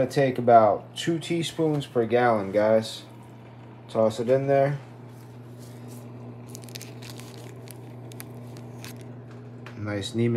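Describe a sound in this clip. A plastic spoon scoops and scrapes dry powder in a bag.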